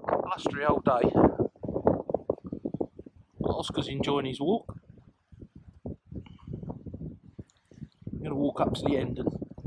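Small waves lap against a stone breakwater.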